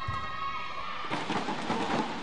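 A young woman shouts in celebration.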